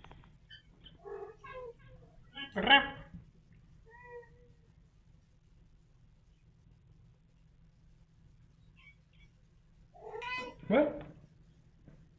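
A cat meows loudly close by behind glass.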